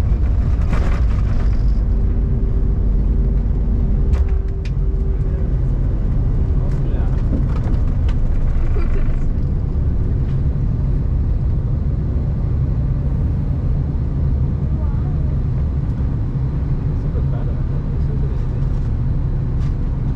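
A jet engine roars steadily inside an aircraft cabin during takeoff.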